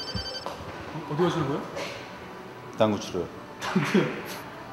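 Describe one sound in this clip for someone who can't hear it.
A man speaks in short bursts close by, with a playful, animated voice.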